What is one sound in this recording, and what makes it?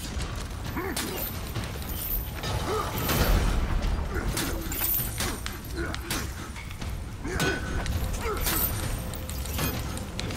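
Steel blades clash and ring repeatedly.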